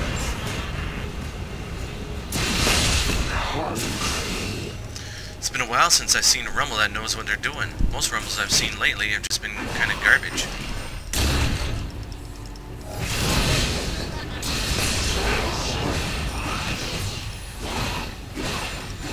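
Game characters' weapons clash and strike.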